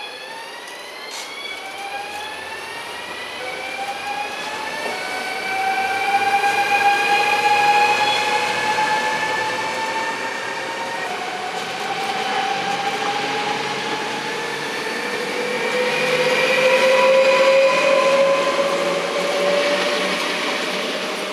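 A train's electric motors whine, rising steadily in pitch as it gathers speed.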